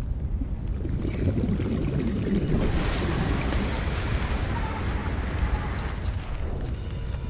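Water splashes and churns at the surface.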